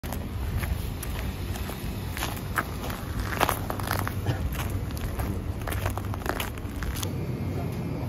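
Footsteps crunch on a gritty pavement outdoors.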